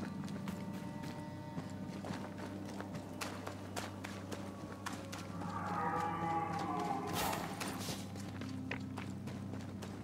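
Footsteps tread through grass and over rough ground.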